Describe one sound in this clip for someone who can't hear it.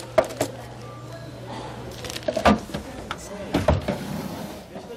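Small plastic drawers clatter and click.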